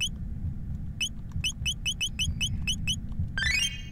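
A video game menu cursor beeps in short blips.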